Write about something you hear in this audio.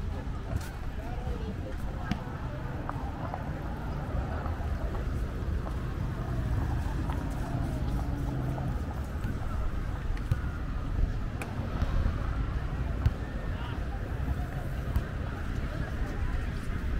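Footsteps scuff on paving close by.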